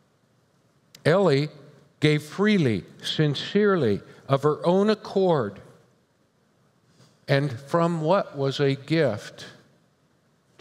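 An older man speaks calmly into a microphone, with pauses between phrases.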